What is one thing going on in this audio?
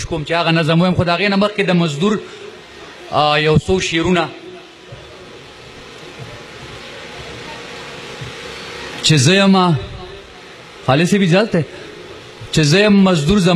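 A man speaks forcefully into a microphone through a loudspeaker, in bursts with pauses.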